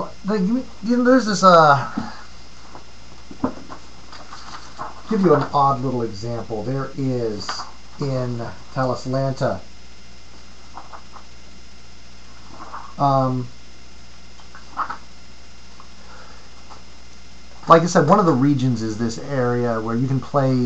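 A middle-aged man talks close to a microphone, in bursts with pauses.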